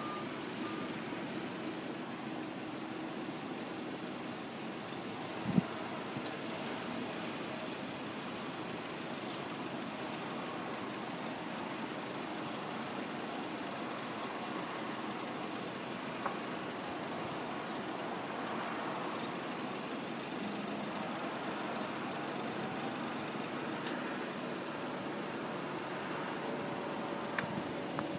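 Car engines idle steadily in slow traffic outdoors.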